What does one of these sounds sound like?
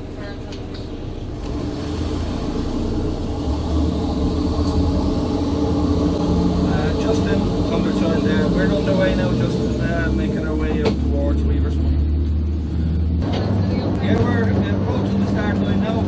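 A boat's engine drones steadily.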